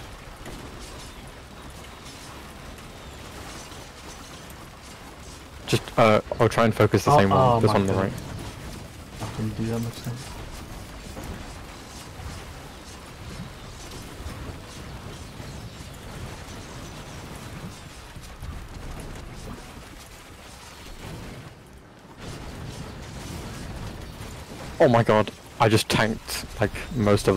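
Game weapons fire with rapid zapping and blasting sounds.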